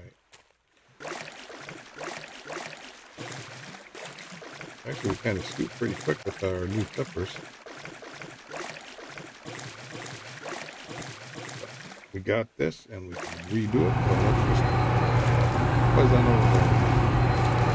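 Water sloshes and splashes around a swimmer.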